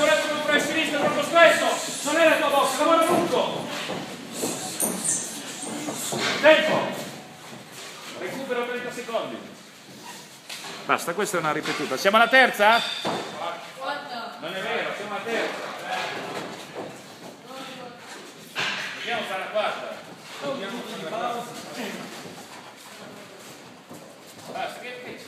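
A middle-aged man talks with animation close by, in a large echoing room.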